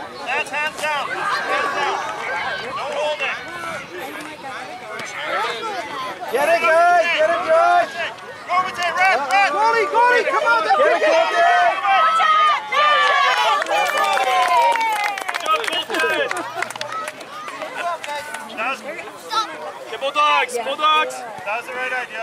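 Young children shout and cheer excitedly outdoors.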